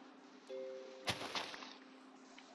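A block of dirt breaks with a crunch.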